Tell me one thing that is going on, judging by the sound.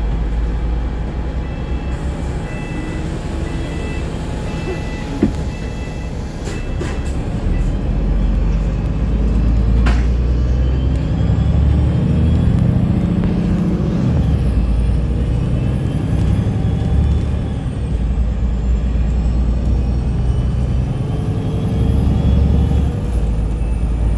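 A vehicle's engine rumbles steadily as it drives along a city road.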